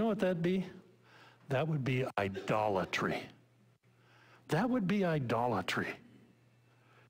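A middle-aged man preaches with emphasis through a microphone in a large room.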